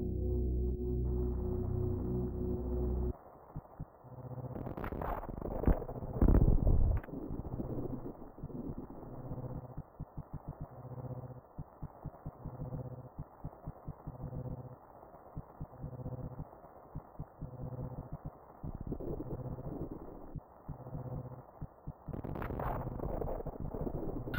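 Low, eerie game music plays with slow pulsing notes.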